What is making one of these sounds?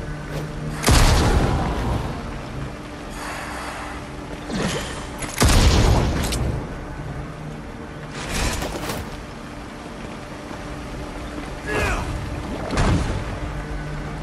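Fiery blasts boom and crackle.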